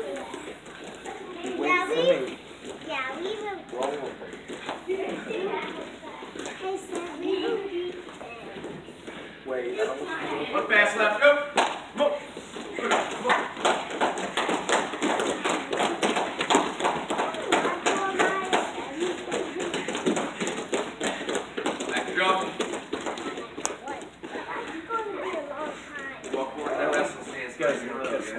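Footsteps patter and thud on a padded mat as children run about.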